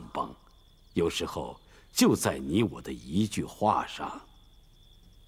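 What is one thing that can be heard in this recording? Another elderly man speaks in a low, earnest voice, close by.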